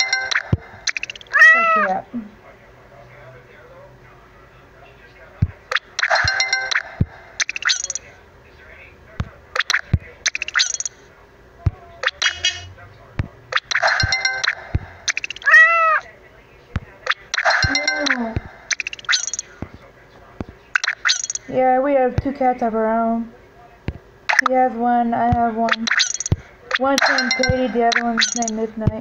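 Short electronic chimes and pops play repeatedly.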